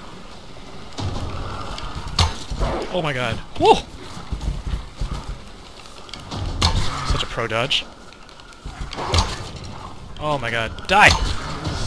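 A bowstring twangs as arrows are loosed, several times.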